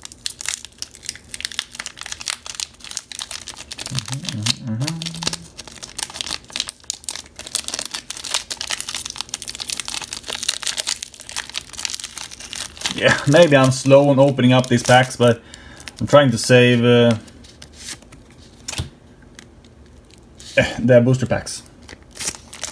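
Foil wrappers crinkle and rustle as hands handle them.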